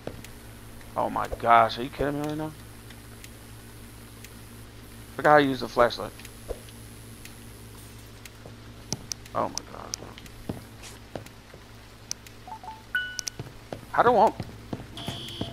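A man speaks briefly and animatedly into a close microphone.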